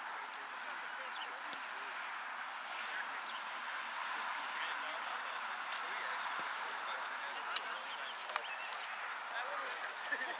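Young men talk and call out across an open field outdoors.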